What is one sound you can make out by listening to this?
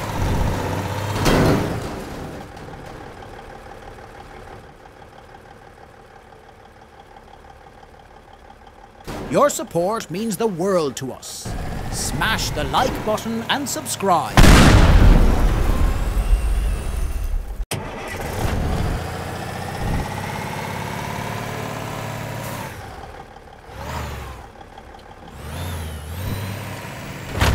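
A truck engine roars as it drives.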